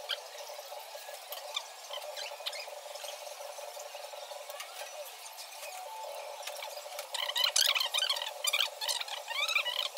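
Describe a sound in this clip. A spoon stirs liquid in a metal pot, clinking against its sides.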